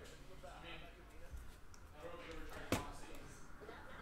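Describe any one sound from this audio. Cards tap and rustle in hands.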